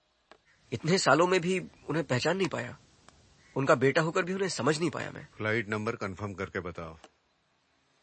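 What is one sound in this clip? A man speaks calmly into a phone nearby.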